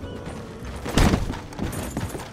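A body slams heavily onto wooden planks.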